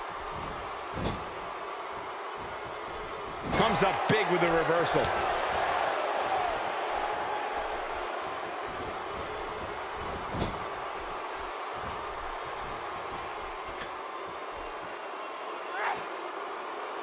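Blows and body slams thud sharply now and then.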